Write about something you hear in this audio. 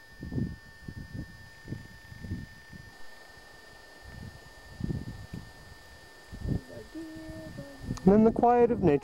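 Wind gusts buffet outdoors.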